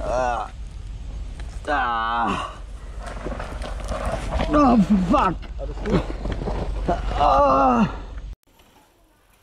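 Bike tyres rattle over rough ground.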